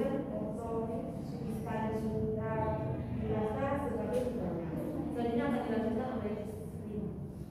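A young woman reads aloud clearly nearby.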